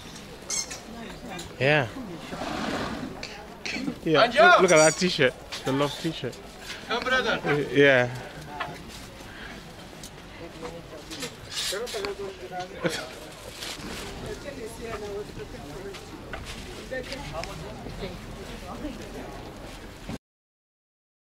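Men and women chatter in a busy crowd outdoors.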